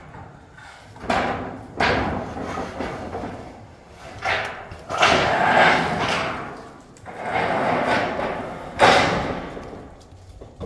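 Corrugated metal roofing sheets rattle and scrape as they are pulled off a wooden frame.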